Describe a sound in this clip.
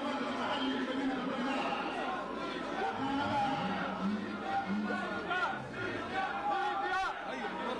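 A large crowd sings together loudly outdoors.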